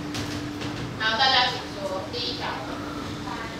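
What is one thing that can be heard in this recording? A woman speaks clearly, heard from across a room.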